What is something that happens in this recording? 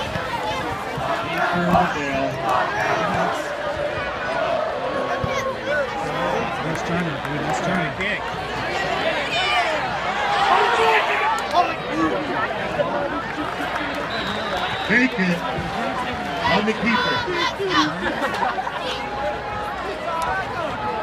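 A large crowd cheers and shouts outdoors, swelling loudly at times.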